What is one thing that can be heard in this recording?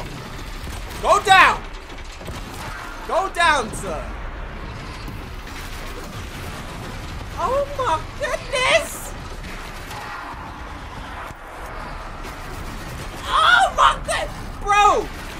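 A young man speaks with animation close to a microphone, now and then exclaiming loudly.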